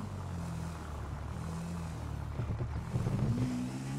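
A motorbike engine hums and revs.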